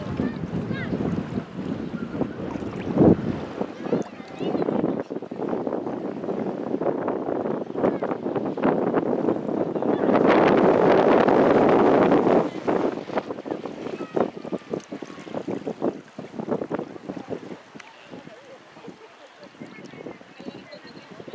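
Small waves slap and splash on choppy sea water.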